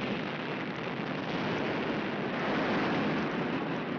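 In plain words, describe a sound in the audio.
Shells explode in the sea with heavy booms.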